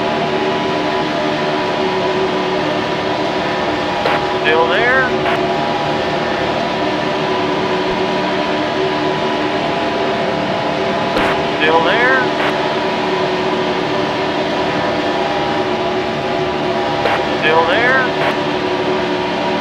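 Race car engines roar steadily at high speed.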